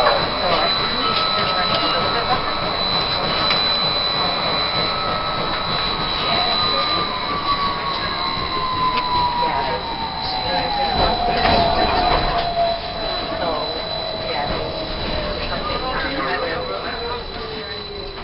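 A crowd of passengers chatters loudly in an enclosed space.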